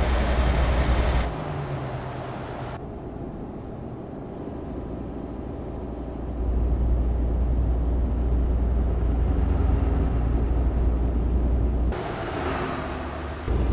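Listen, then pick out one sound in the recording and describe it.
A truck engine rumbles steadily while driving on a highway.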